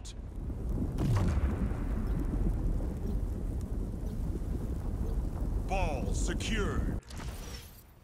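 Lava roars and rumbles loudly.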